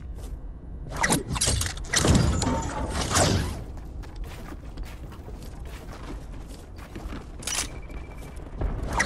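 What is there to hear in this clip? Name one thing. Wooden walls and ramps snap quickly into place with clattering knocks.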